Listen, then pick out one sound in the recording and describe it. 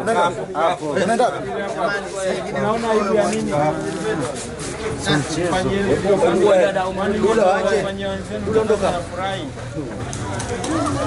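Several men talk and shout excitedly close by.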